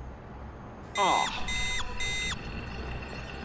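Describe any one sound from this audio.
Short electronic beeps chime in quick succession.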